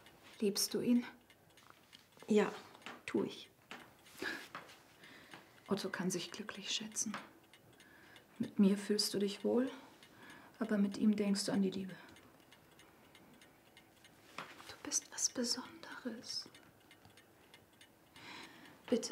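A woman speaks softly and earnestly, close by.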